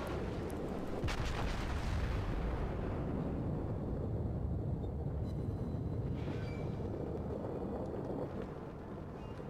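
Shells explode in the water with deep booms.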